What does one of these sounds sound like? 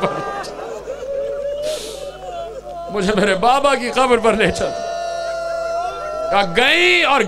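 A man recites loudly and with passion through a microphone and loudspeakers, his voice rising and held in long, sung tones.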